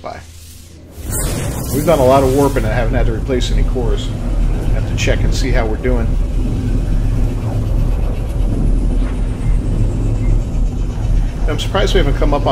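A spaceship engine roars in a deep, steady rush.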